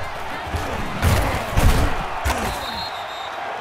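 Football players' pads clash in a tackle.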